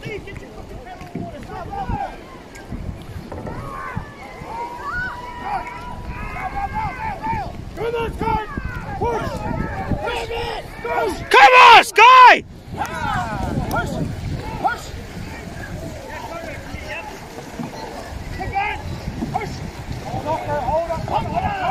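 Men and women shout and cheer loudly, close by.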